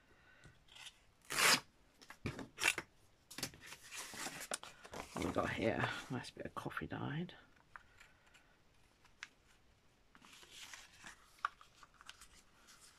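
Paper rustles and crinkles as it is handled.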